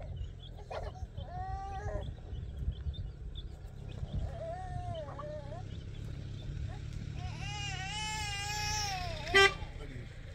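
A small child whines and cries out close by.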